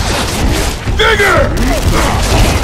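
A man shouts out.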